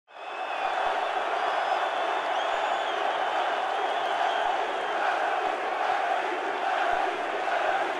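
A large crowd of fans chants and cheers loudly in a stadium.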